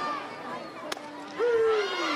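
A bat cracks sharply against a softball.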